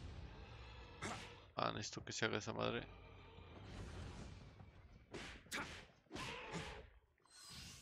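Swords clash and slash in quick strikes.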